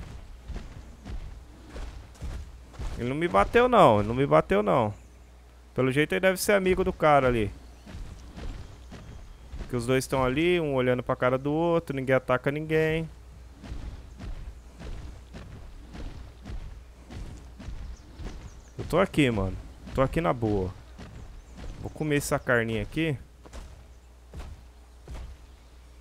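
Heavy footsteps thud on grass.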